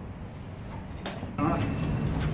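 A hammer knocks against an anvil.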